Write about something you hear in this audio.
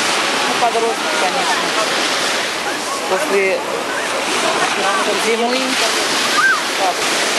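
Waves break and foam onto the shore.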